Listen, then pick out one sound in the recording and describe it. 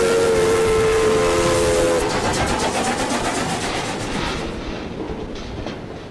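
A steam locomotive chugs and rumbles past close by.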